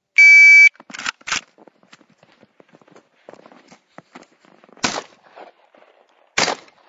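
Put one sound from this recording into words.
A rifle fires sharp single shots outdoors.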